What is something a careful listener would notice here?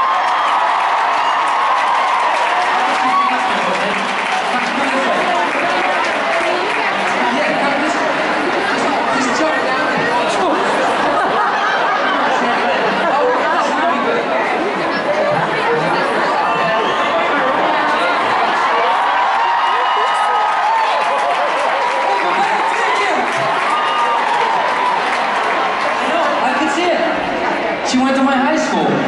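A large crowd screams and cheers loudly in a big echoing arena.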